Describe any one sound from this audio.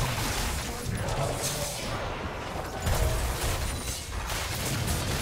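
Magic spell effects whoosh and crackle in a fast fight.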